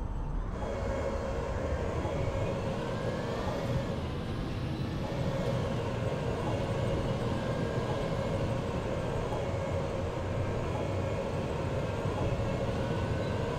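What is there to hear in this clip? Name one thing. A tank engine rumbles loudly and steadily.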